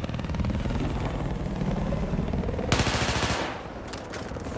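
A rifle fires rapidly in bursts.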